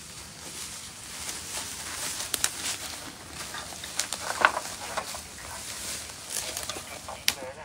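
Footsteps crunch on dry grass and leaves.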